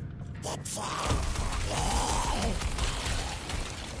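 Magic spells burst with a fiery roar.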